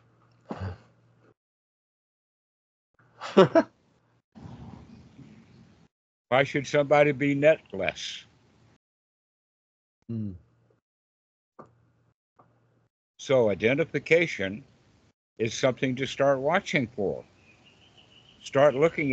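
An older man talks and laughs over an online call.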